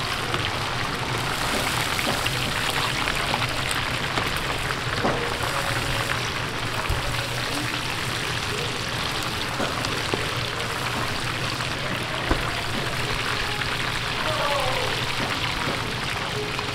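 Metal strainers clink against a pan.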